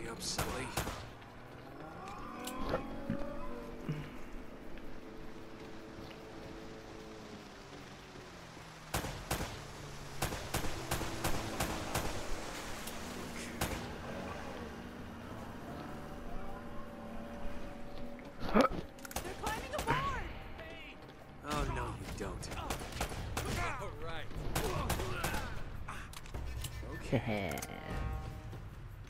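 Gunshots crack sharply, several in quick bursts.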